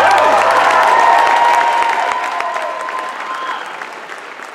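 A young woman sings into a microphone in a large hall, holding a long final note.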